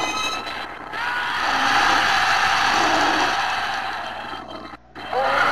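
A large reptile roars loudly.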